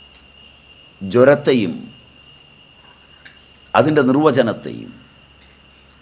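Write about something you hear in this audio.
An elderly man speaks slowly and expressively, close by, in short bursts.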